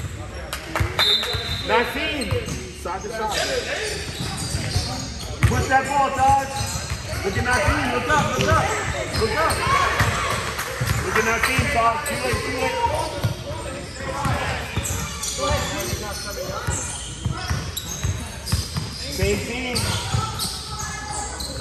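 A basketball bounces on a hard wooden floor in an echoing gym.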